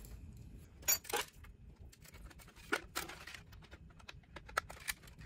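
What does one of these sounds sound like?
A hard plastic part knocks and scrapes against other parts.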